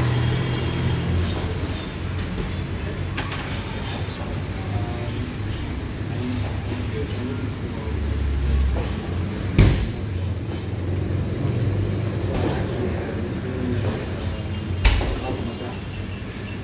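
Punches thud against heavy bags in a large echoing hall.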